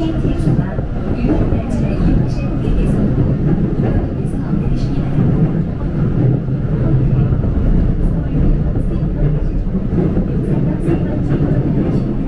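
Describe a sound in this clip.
A passing train rushes by close alongside.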